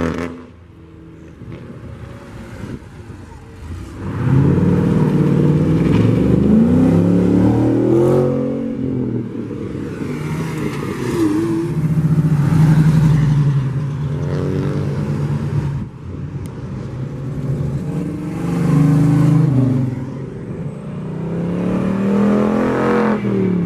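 A sports car accelerates past.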